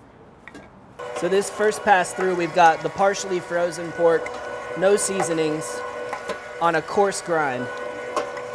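A meat grinder motor hums steadily while meat is pushed through.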